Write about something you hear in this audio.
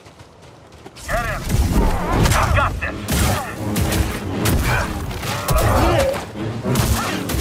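Swords clash and hum in a loud fight.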